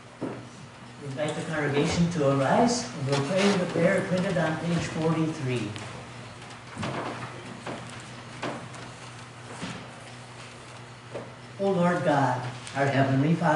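A man speaks calmly and clearly in a reverberant room.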